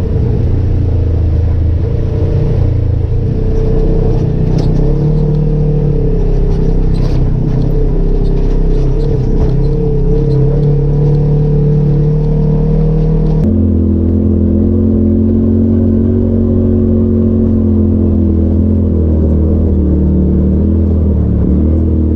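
A side-by-side UTV engine drones while crawling at low speed over a rough trail.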